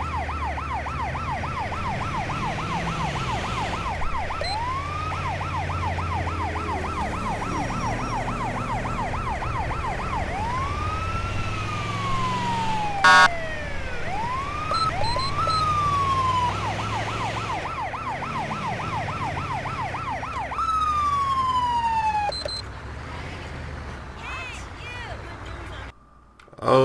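An engine rumbles low and steady as the ambulance drives.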